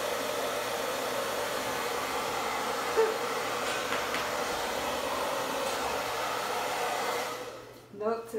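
A hair dryer blows with a steady, loud rush of air.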